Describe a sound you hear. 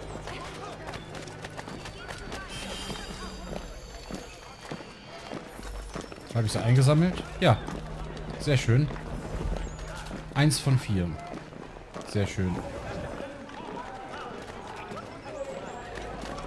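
Footsteps tap on cobblestones.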